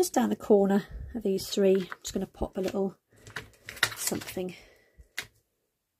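A thin plastic sheet crinkles softly as hands move it.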